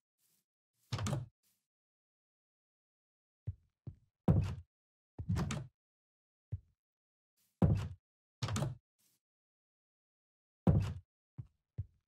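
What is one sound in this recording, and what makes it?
Wooden doors creak open and bang shut.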